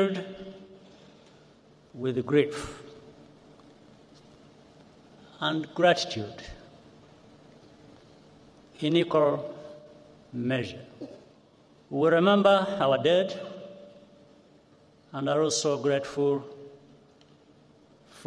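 A man speaks slowly and solemnly into a microphone, with pauses between phrases, in a large echoing hall.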